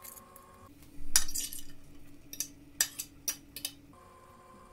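A metal spoon scrapes and clinks against a glass lid.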